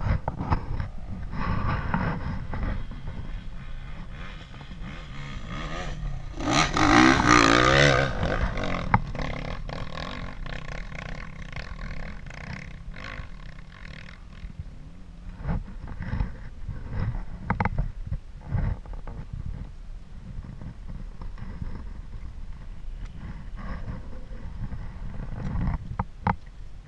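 A distant dirt bike engine drones.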